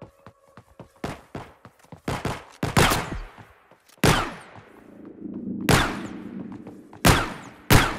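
Guns fire in loud, sharp shots that echo.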